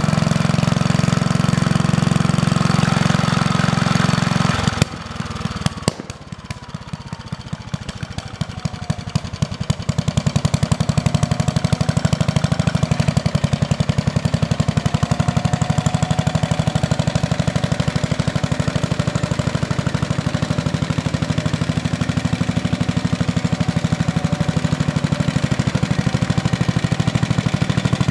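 An old walk-behind garden tractor engine chugs under load while plowing.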